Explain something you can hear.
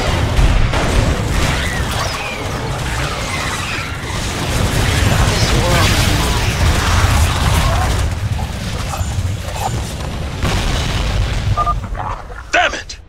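Rapid gunfire and explosions crackle in a dense battle.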